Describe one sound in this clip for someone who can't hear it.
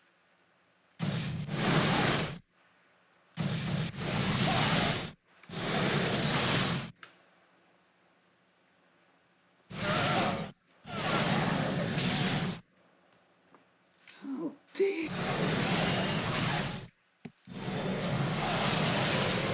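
A man talks into a microphone close by, with animation.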